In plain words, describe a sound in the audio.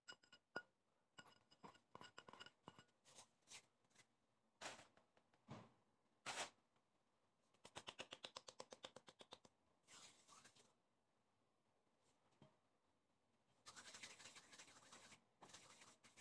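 Gloved hands rub and crumble a dry mixture in a bowl.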